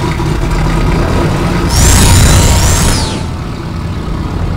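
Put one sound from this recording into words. An airboat engine drones loudly.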